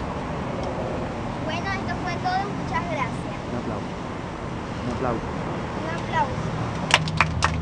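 Young girls talk close by.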